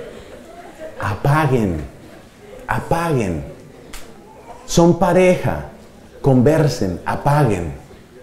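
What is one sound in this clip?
A man speaks with animation through a microphone, with a slight room echo.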